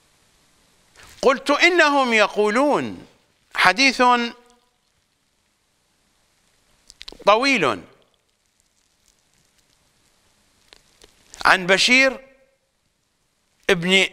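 An older man speaks calmly and slowly into a microphone, with long pauses.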